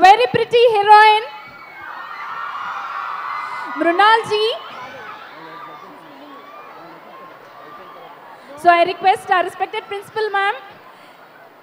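A large crowd of young women cheers and screams excitedly in bursts.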